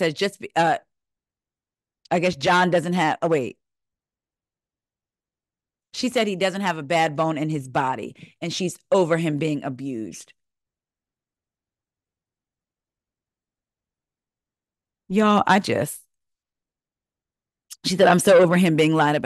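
A woman speaks with animation close to a microphone, heard through an online call.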